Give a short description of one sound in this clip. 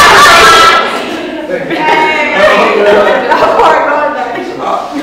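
A crowd of men and women chatter and cheer excitedly.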